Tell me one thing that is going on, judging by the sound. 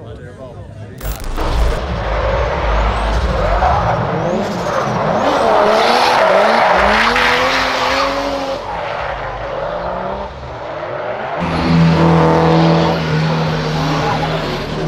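A car engine roars and revs up and down loudly.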